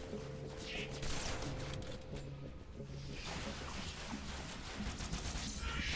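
Plasma weapon shots crackle and explode.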